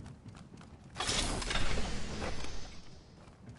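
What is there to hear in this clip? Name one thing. A metal bin slides open with a loud whoosh.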